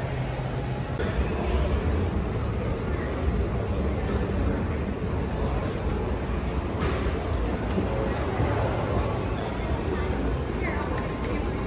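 An escalator hums and rumbles steadily.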